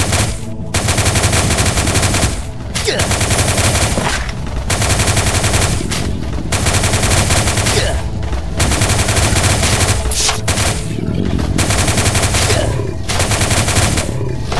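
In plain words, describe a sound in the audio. Rapid gunfire rattles in long bursts with short pauses between them.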